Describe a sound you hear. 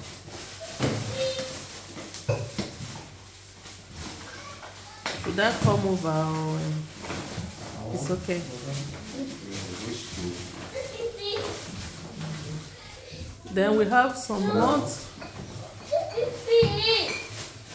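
Plastic bags rustle and crinkle as groceries are unpacked.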